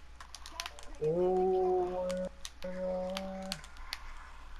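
A short musical jingle chimes from a glowing box.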